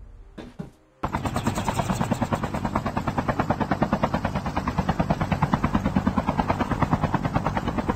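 A helicopter's rotor thumps rapidly and loudly close by.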